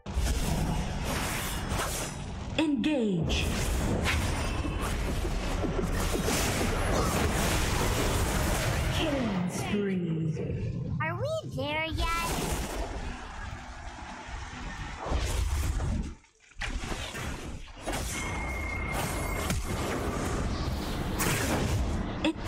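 Game spell effects whoosh and blast in quick bursts.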